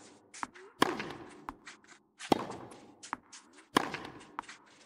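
A tennis ball is struck hard with a racket, back and forth.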